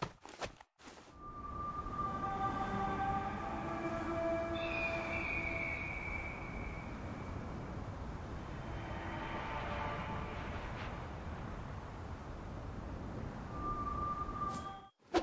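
Upbeat game music plays.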